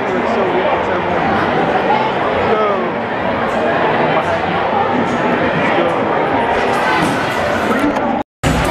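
A crowd chatters loudly in a large echoing hall.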